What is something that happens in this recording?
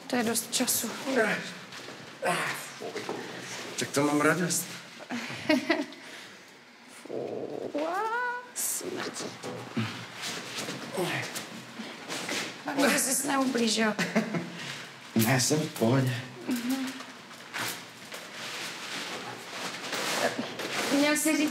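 A young woman talks with animation nearby.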